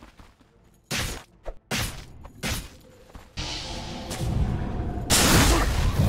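Magic spells whoosh and burst in a fight.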